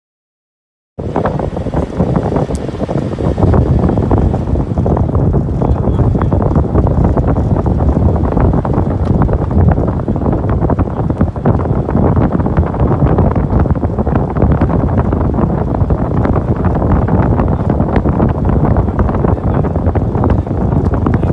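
Wind rumbles loudly against the microphone outdoors.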